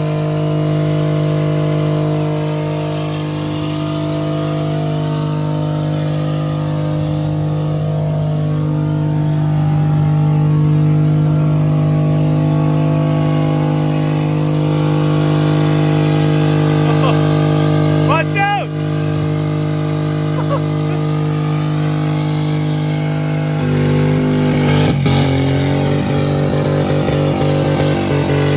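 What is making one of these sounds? A car engine runs loudly with a steady, rough drone.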